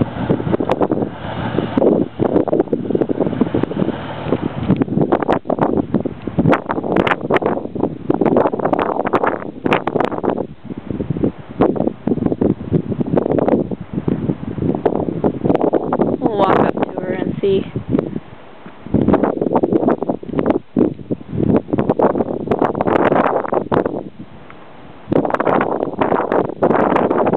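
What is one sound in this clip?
Wind buffets loudly in gusts outdoors.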